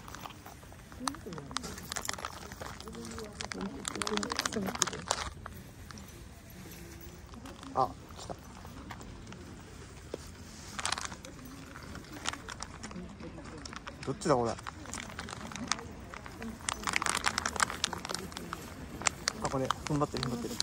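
A small dog rustles through tall grass.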